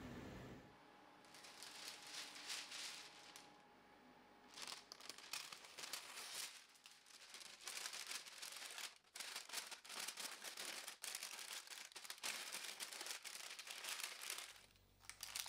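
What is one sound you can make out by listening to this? Paper crinkles and rustles as it is folded and wrapped by hand.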